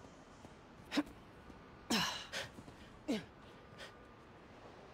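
Footsteps thud on a snowy roof.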